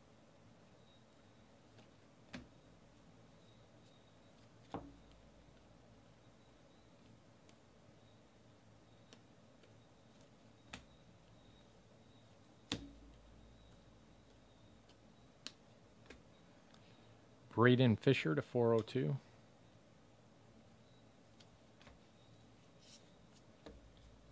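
Trading cards softly flick and slide against each other.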